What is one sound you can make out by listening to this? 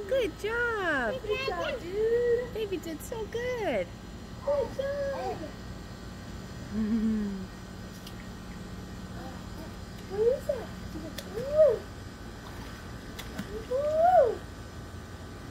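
A young woman talks to a small child in a lively, sing-song voice close by.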